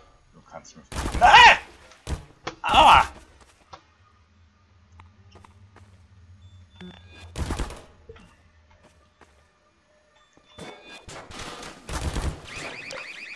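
An explosion bursts with a loud bang.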